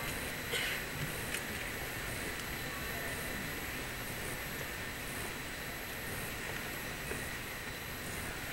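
Footsteps tap on paving as people walk by.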